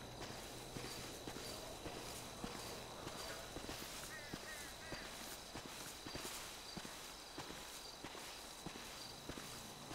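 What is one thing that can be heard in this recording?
Dry brush rustles against legs.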